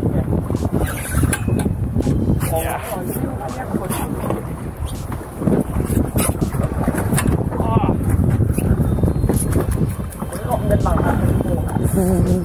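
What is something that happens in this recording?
Waves slap and slosh against a boat's hull.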